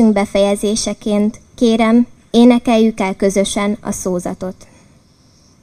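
A young woman speaks clearly into a microphone outdoors, reciting.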